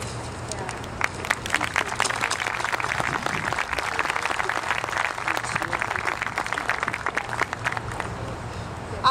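A crowd claps and applauds outdoors.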